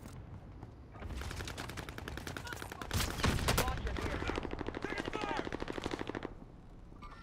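A gun fires in a fast, steady burst.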